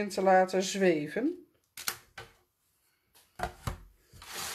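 A plastic plate slides and taps on a hard surface.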